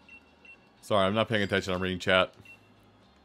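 A bright electronic jingle chimes briefly.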